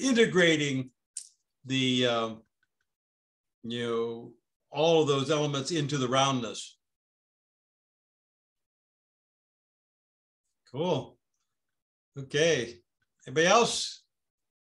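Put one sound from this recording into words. A man speaks with animation over an online call, in bursts with pauses.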